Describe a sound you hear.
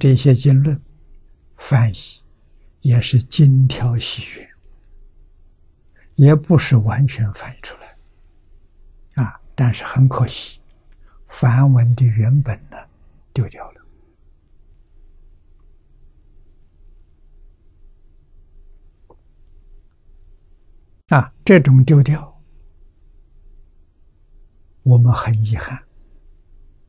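An elderly man speaks slowly and calmly into a microphone, with long pauses.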